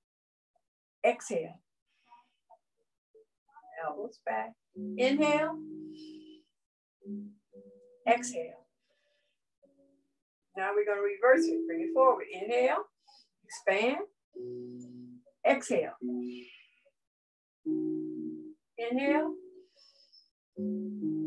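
An older woman speaks with animation through an online call.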